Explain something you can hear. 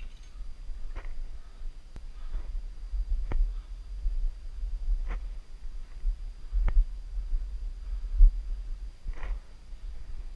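Boots scuff and tap on bare rock.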